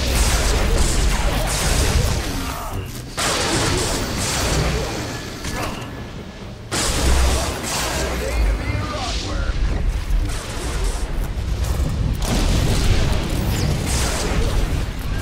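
Lightning spells crackle and zap in bursts.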